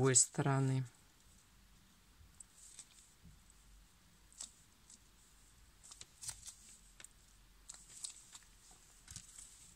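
Fingers rustle and tap softly against a fabric-covered ornament.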